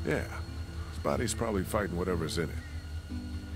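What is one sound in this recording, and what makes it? A man answers in a worried, hushed voice.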